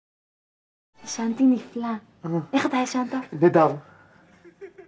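A young woman talks playfully up close.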